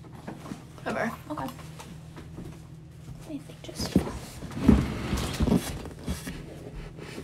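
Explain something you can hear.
Fabric rustles and thumps as bedding is moved.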